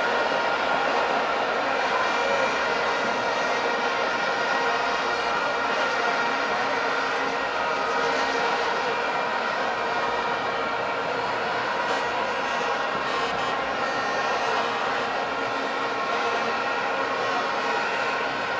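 A large stadium crowd roars and chants steadily outdoors.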